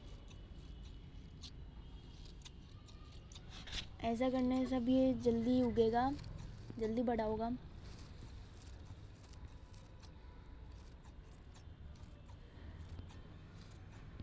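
Scissors snip through leafy plants with soft, crisp cuts.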